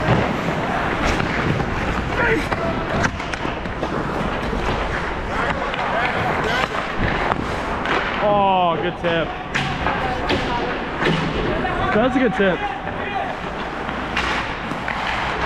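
Skate blades scrape and carve across the ice.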